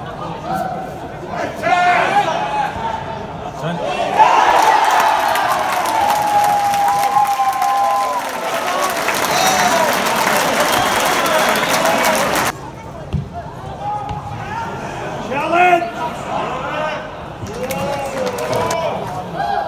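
Men shout to each other across a large, echoing, empty stadium.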